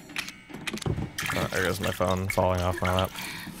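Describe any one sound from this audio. Liquid splashes and hisses onto a hand.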